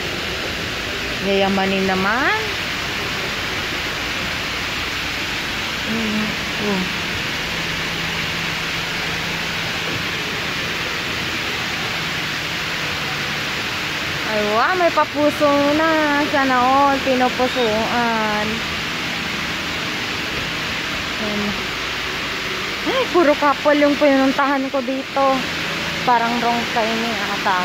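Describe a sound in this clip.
Water pours down steadily in a large echoing hall.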